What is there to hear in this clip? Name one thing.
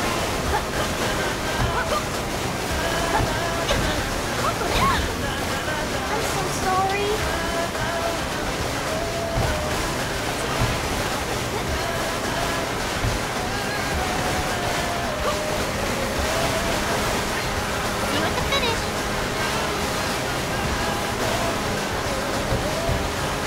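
Water sprays and splashes loudly beneath a jet ski.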